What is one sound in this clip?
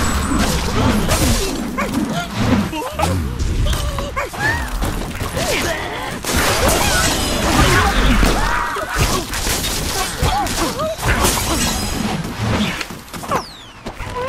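Wooden blocks crash and clatter as a tower collapses.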